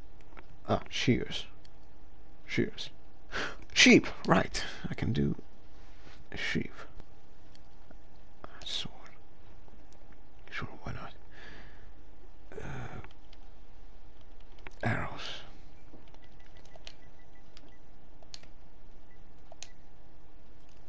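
Soft interface clicks sound as a menu selection moves.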